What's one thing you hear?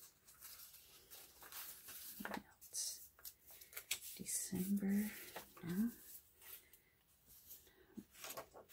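Stiff paper pages rustle and flap as they are turned.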